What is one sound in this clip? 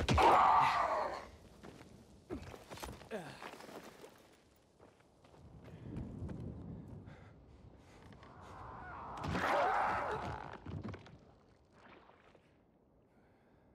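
Hands and boots scrape on rock during a climb.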